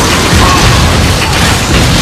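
A fiery blast whooshes and explodes.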